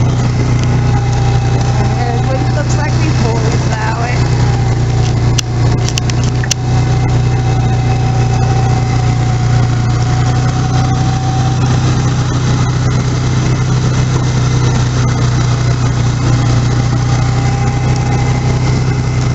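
A snowmobile engine drones steadily up close.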